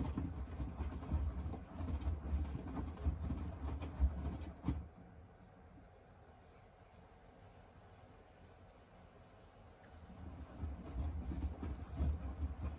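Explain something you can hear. A washing machine drum tumbles and sloshes laundry in water with a low rumble.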